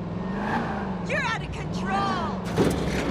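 Tyres squeal as a car brakes hard.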